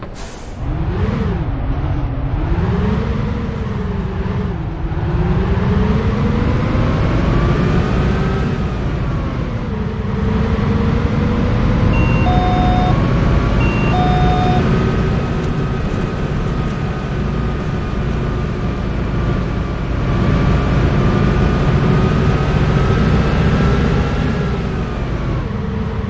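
A bus engine hums and rises and falls in pitch as the bus speeds up and slows down.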